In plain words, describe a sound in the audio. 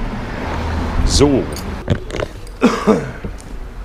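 A man speaks close to the microphone in a relaxed voice.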